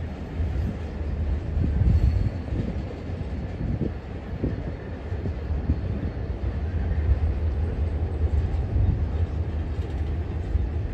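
Freight cars clank and squeal on the rails.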